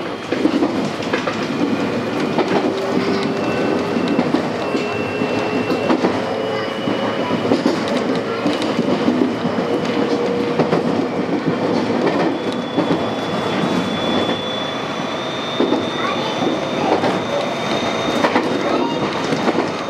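A train motor whines with a rising pitch.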